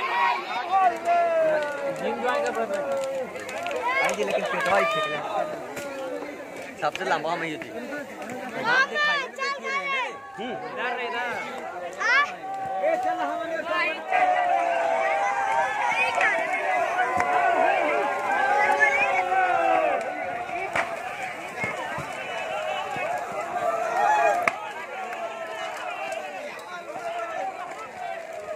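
Young men shout and cheer together outdoors.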